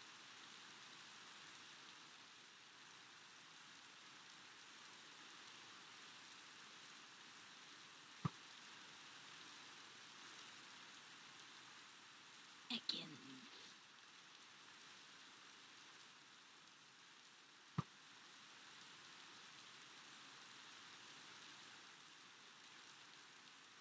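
Steady rain falls and hisses.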